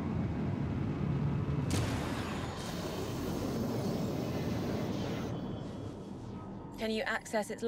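A spacecraft engine roars steadily, then dies down.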